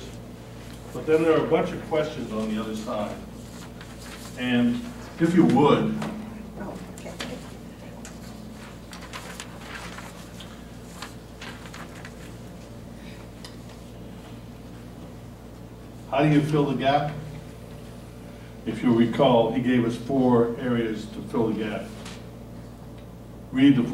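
A man speaks to an audience through a microphone.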